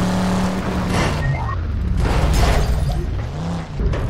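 A car crashes and tumbles with heavy thuds.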